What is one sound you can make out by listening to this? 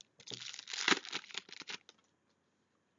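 Foil card wrappers crinkle and rustle close by.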